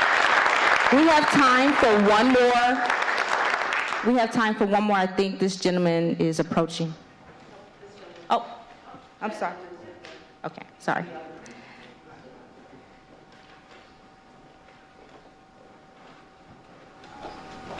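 A woman speaks into a microphone over loudspeakers, echoing in a large hall.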